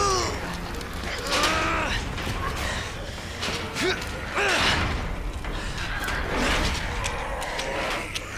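A metal gate rattles as it is pushed shut.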